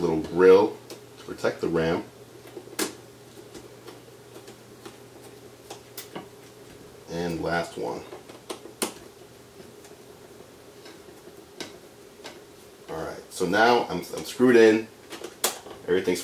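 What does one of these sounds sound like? Small plastic parts click and rattle.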